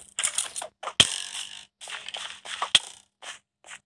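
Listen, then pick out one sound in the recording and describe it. An arrow is shot and strikes with a sharp thud.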